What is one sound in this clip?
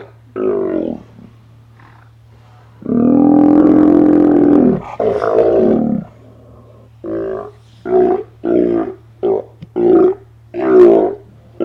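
Sea lions roar and bark loudly close by, in short repeated calls.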